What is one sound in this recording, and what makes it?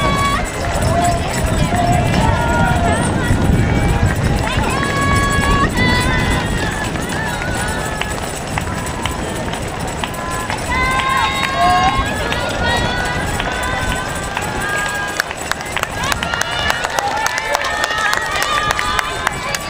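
A crowd of spectators cheers and calls out outdoors.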